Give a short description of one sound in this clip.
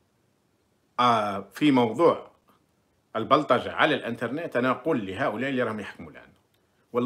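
A middle-aged man speaks with animation close to a phone microphone.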